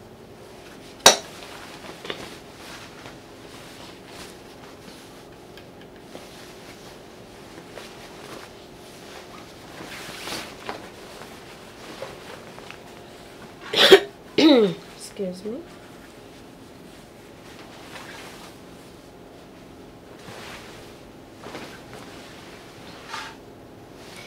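Fabric rustles as it is handled and slid across a table.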